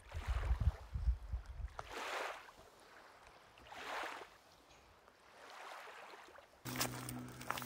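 Water laps gently against rocks at the shore.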